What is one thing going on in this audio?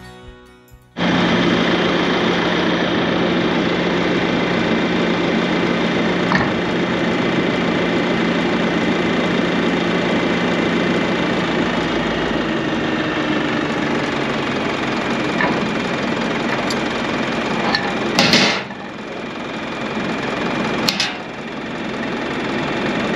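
A tractor engine idles steadily nearby.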